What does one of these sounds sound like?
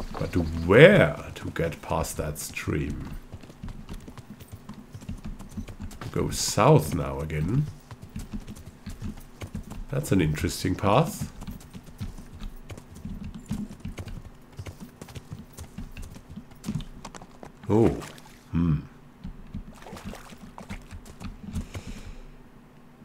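Horse hooves clop steadily on a dirt path.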